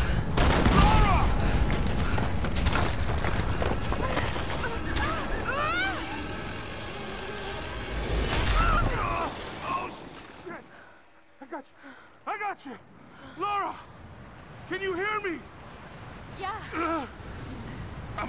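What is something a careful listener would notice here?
A man calls out anxiously over a radio.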